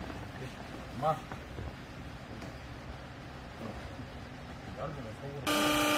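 Clothes rustle as they are stuffed by hand into a press.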